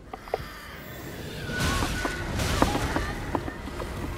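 A blade slashes and strikes a creature.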